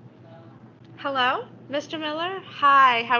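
A young girl speaks on the phone with animation, heard through a small loudspeaker.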